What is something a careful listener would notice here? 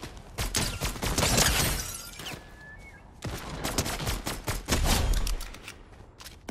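A sniper rifle fires in a video game.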